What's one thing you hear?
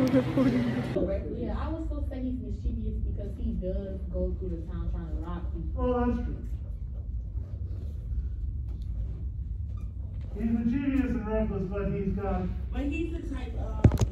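A young woman talks calmly and wearily close by, her voice slightly muffled.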